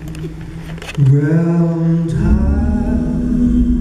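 Several men sing together in close harmony through microphones.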